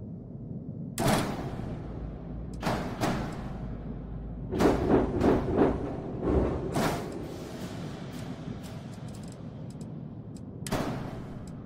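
A whooshing sweep rises and fades as a spaceship turns.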